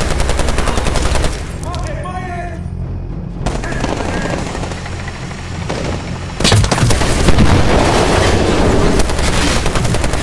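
Explosions boom and roar close by.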